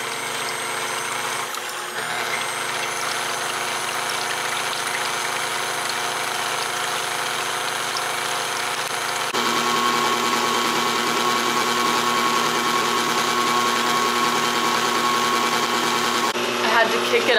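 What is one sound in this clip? A stand mixer whirs steadily as it whips.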